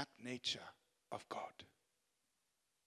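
A young man speaks into a microphone over loudspeakers.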